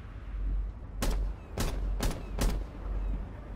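Rifle shots fire in a short burst of single cracks.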